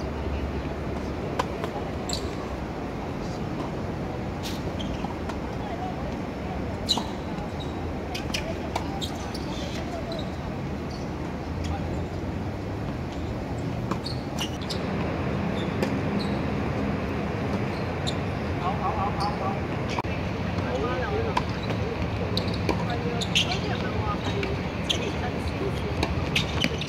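Tennis rackets strike a ball back and forth.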